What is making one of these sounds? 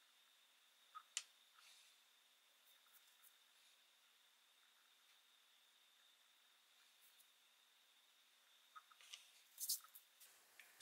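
Wooden blocks click softly as hands handle them.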